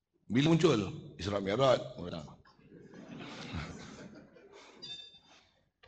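An elderly man speaks emphatically into a microphone.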